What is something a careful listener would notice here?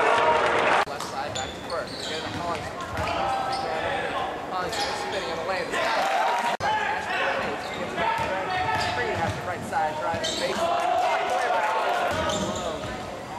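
A crowd of spectators chatters and cheers in an echoing gym.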